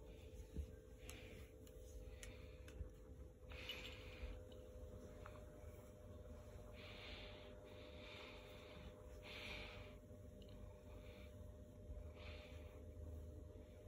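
A hand rubs and scratches through a cat's fur up close.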